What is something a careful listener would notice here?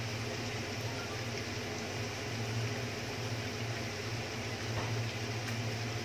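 Meat sizzles and crackles steadily in a hot pan.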